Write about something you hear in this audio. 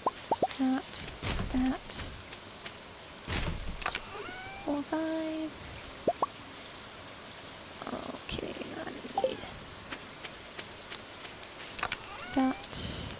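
Short electronic blips and chimes sound as menus open and close.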